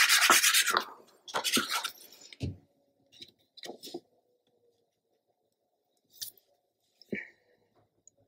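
Paper rustles and slides as it is pressed down by hand.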